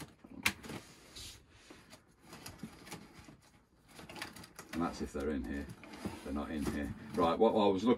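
Items rustle and clatter in a drawer.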